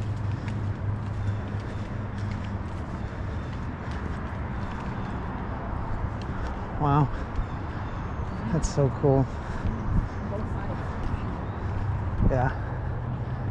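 Footsteps crunch on a dirt path scattered with dry leaves.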